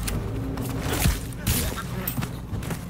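A blade slashes into flesh with a heavy thud.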